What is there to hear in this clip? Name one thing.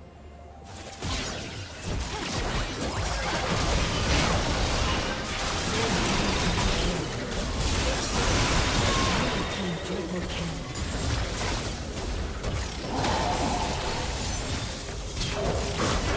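Magic blasts and hits crackle and boom in a fast, busy fight.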